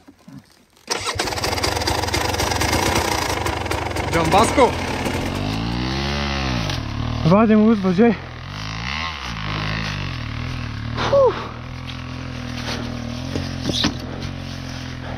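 Dirt bike engines rev and idle nearby.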